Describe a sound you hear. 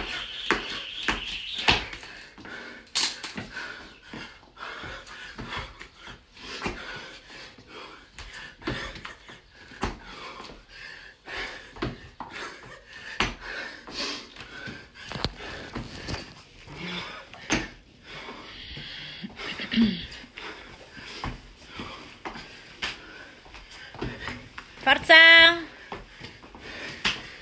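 Sneakers thump and squeak on a hard floor as a man jumps and drops down.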